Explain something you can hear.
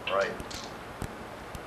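A man speaks briefly in a room.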